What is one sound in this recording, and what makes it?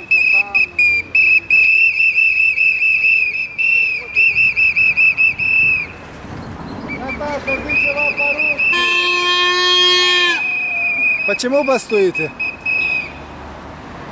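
A whistle blows in short, rapid bursts.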